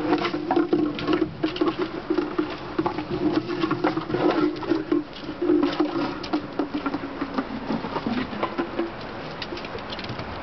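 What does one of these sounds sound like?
Puppies' claws patter and scrabble on a wooden deck.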